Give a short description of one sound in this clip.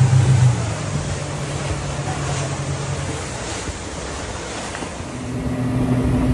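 Water splashes and rushes against the side of a boat.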